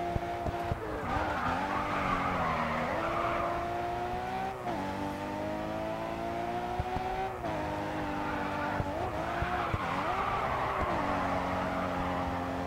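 Car tyres screech while sliding through bends.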